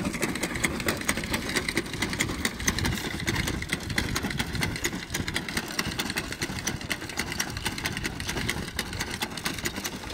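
A hand-pushed seeder rattles and clicks steadily as it rolls over rough soil.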